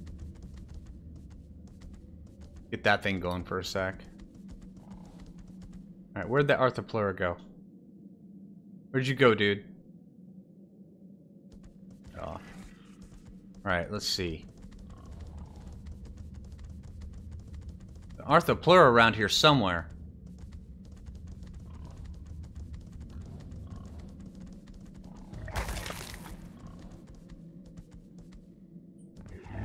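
A large animal's footsteps thud steadily on the ground.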